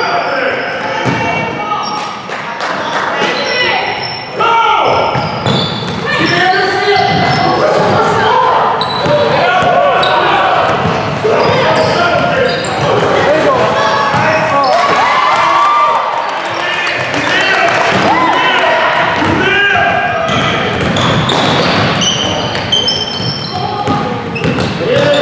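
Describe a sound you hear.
Teenage boys shout and call out to each other across the echoing hall.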